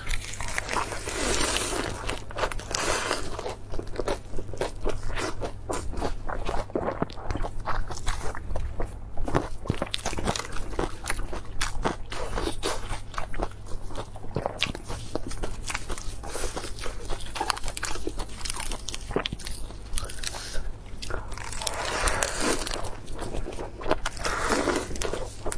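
A young woman bites into crisp lettuce with a crunch.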